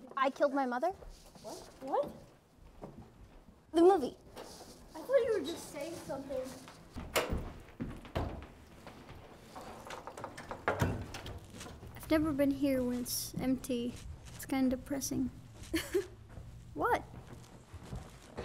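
A young woman talks excitedly nearby.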